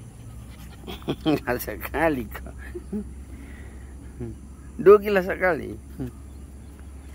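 A dog yelps and barks close by.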